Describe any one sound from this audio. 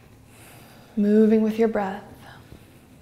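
A young woman speaks briefly and calmly nearby.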